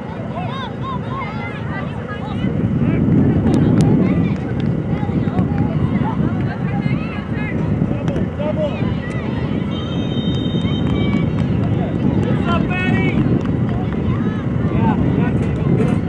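A crowd of spectators chatters and calls out outdoors at a distance.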